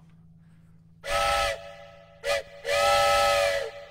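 A man blows short, steady notes on a wooden flute.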